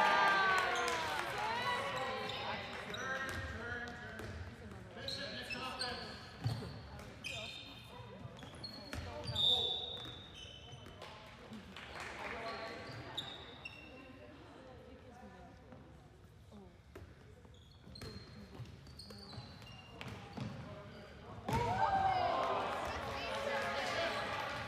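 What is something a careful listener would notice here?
A ball bounces on a hard floor in a large echoing hall.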